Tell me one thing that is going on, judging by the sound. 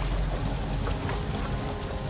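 Fires roar and crackle in furnaces.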